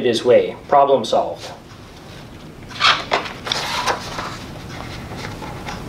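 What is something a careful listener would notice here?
Paper pages rustle as a book page is turned.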